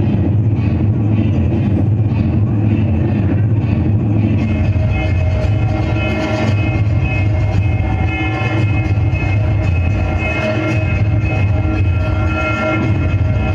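Loud music with a heavy beat plays over loudspeakers.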